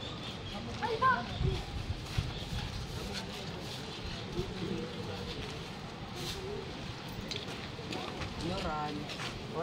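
A group of people talk and call out nearby outdoors.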